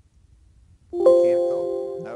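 A computer plays a short alert chime.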